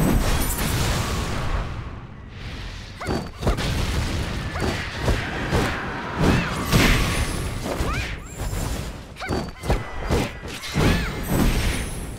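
Flames roar and crackle.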